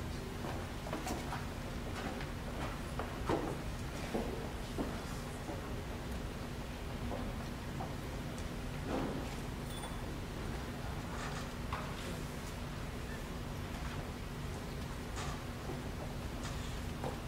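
A man announces through a loudspeaker in a large echoing hall.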